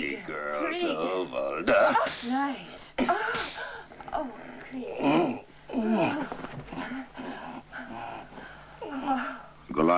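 A woman cries out in distress.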